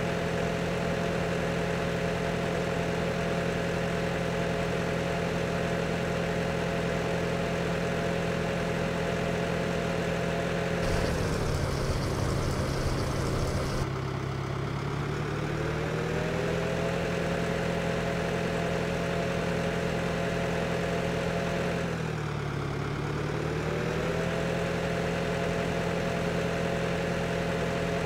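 A tractor engine hums steadily, dropping low while idling and revving back up as it drives on.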